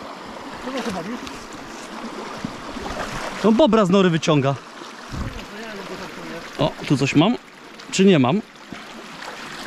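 Shallow water flows and babbles.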